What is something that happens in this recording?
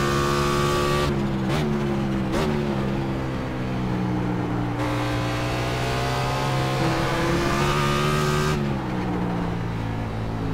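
A racing car engine drops in pitch as the car slows into corners.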